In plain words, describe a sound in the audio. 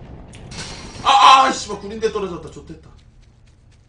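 A young man speaks loudly with animation close to a microphone.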